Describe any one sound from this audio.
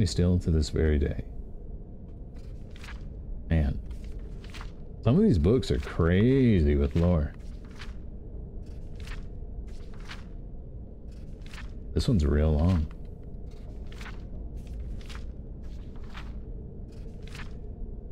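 Book pages turn with soft papery flips.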